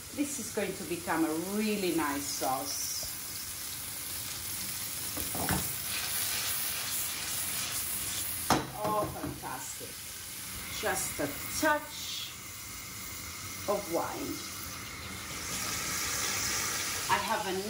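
Oil sizzles steadily in a hot frying pan.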